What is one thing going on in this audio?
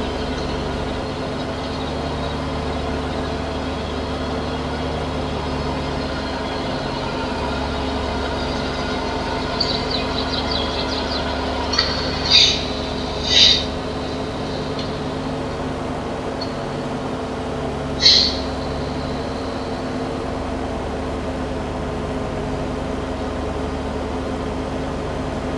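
A mower whirs as it cuts grass.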